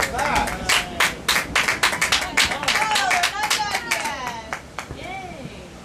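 Fireworks crackle with rapid pops in the distance.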